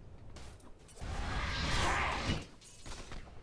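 Magic spells burst and crackle with a whooshing rush.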